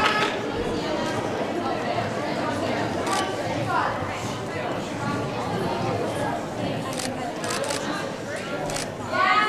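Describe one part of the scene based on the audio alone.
A crowd of girls and women chatters and calls out in a large echoing gym.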